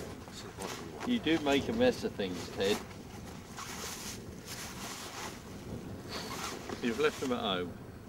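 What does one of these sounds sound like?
A man talks nearby, outdoors.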